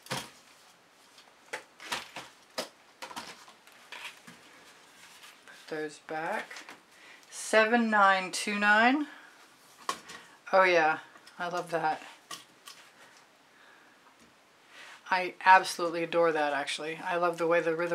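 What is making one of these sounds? Light knocks and taps sound as small canvases are lifted and set down.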